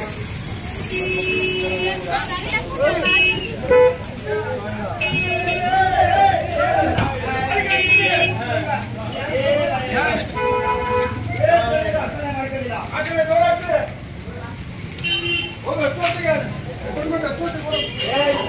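A bus horn honks in short blasts.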